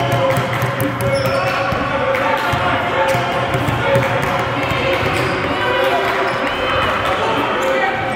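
A basketball bounces repeatedly on a hard floor in an echoing gym.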